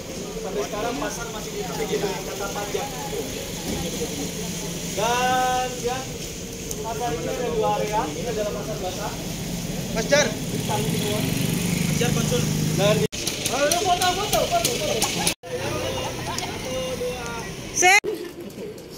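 A crowd of men and women chatter and call out outdoors.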